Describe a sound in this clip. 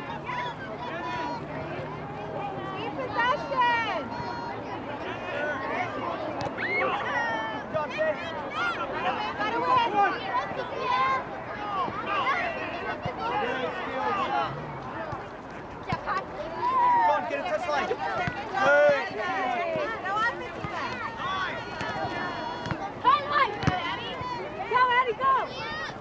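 Many voices of spectators and young players shout and call out outdoors.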